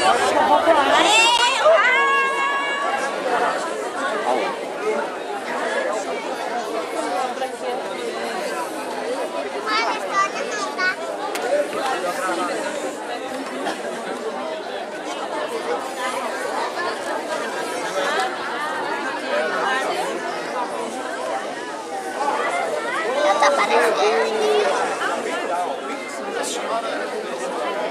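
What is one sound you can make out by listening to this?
A crowd of men and women talk and shout excitedly outdoors.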